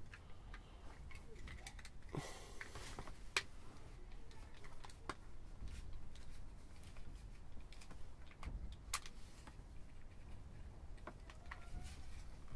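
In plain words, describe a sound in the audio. Plastic parts rub and scrape together in the hands.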